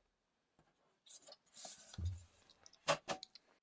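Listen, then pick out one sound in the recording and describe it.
Hands handle a small metal box, which knocks and scrapes on a hard surface.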